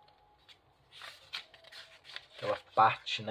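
Thin paper pages rustle as they are turned.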